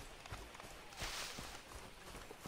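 Leafy bushes rustle briefly as someone pushes through.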